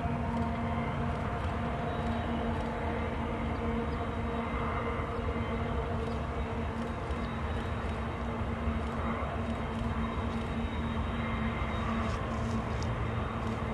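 Diesel locomotives rumble and drone steadily in the distance.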